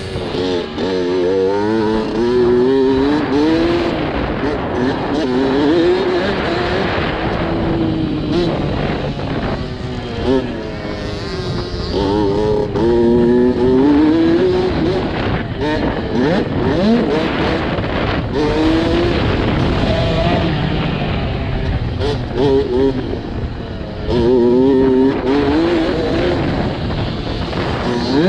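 A dirt bike engine revs up and down through the gears as it races.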